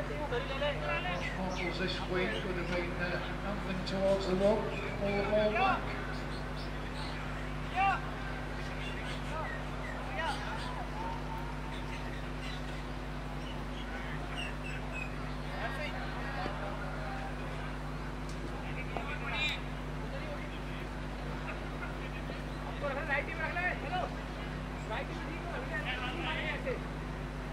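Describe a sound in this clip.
Men call out and talk at a distance outdoors.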